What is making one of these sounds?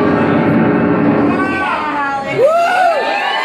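A piano plays a chord.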